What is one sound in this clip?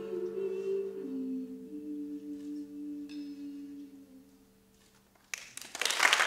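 An electric guitar rings out with long held notes.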